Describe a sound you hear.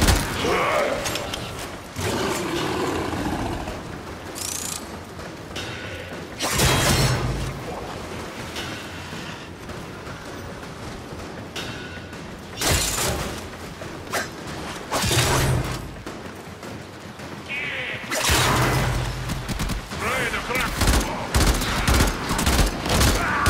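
Gunfire bursts out in quick shots.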